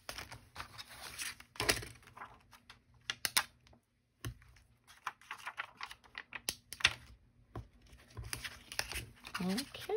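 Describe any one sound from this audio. Stiff paper cards rustle and slide against each other as a hand shuffles them.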